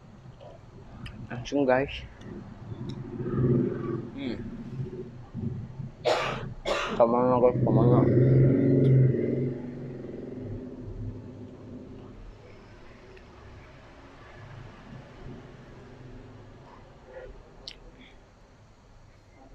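A young man chews food loudly and smacks his lips close to a microphone.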